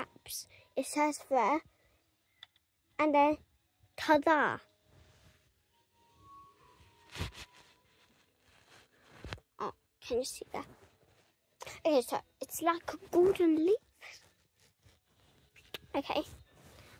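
A young girl talks with animation close to a microphone.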